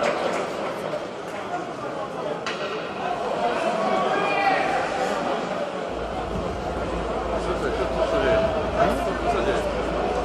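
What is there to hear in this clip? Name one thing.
Skates scrape and hiss on ice.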